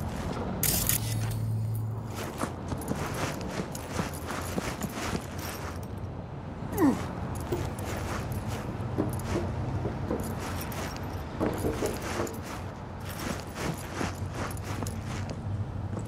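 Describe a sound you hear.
Footsteps thud and tap across hard rooftops and pavement.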